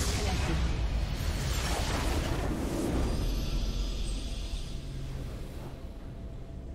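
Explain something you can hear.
A loud rumbling explosion booms and fades.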